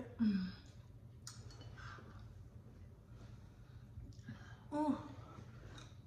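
A young woman chews and slurps soup close to a microphone.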